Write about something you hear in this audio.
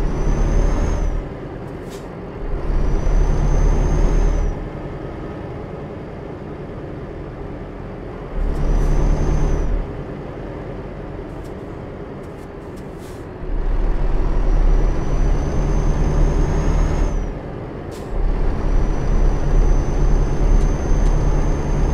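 A truck engine hums steadily, now louder, now softer.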